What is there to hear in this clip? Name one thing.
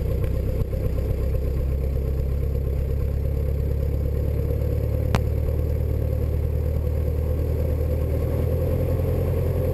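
A small propeller plane's engine drones loudly and steadily from inside the cockpit.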